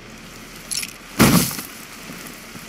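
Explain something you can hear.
A rifle clatters as it is raised.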